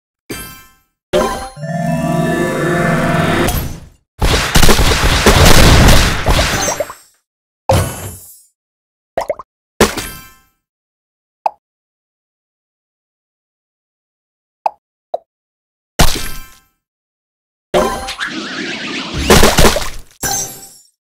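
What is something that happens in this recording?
Game sound effects chime and burst as blocks explode.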